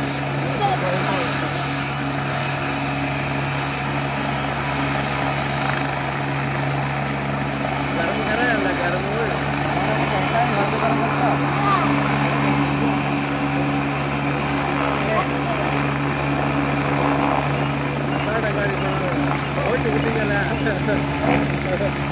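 A helicopter's engine and rotor roar steadily nearby.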